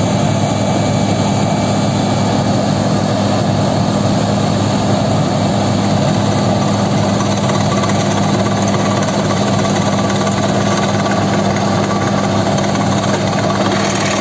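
A drill rod grinds into the ground.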